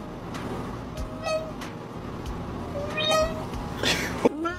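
A kitten meows softly.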